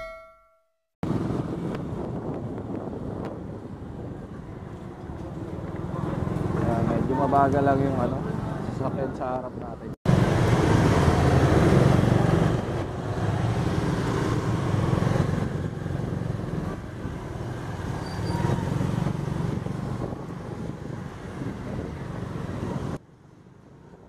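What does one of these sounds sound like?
A motorcycle engine hums steadily as it rides through street traffic.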